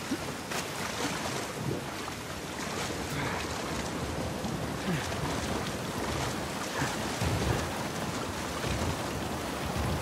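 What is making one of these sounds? Rushing water churns and splashes steadily.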